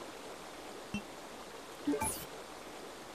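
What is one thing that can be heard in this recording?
A game menu gives short electronic beeps.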